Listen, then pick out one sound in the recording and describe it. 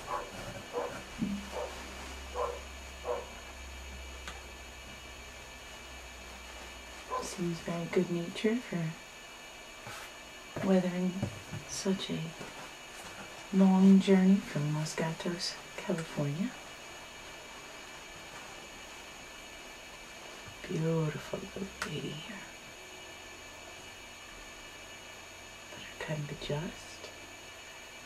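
A woman talks calmly close by, pausing often.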